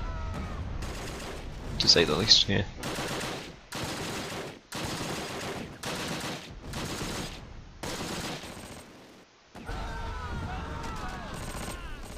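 Explosions boom in short bursts.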